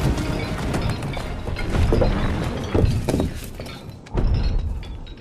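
A brick wall crashes and crumbles with a deep rumble.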